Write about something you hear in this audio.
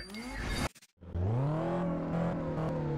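A car engine starts and revs with a deep rising rumble.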